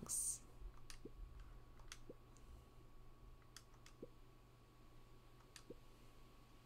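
A soft blip sounds each time a new line of game dialogue pops up.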